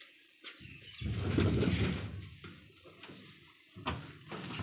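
A metal oven lid opens with a rattle.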